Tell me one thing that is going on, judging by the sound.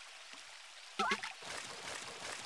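A fish splashes loudly in the water.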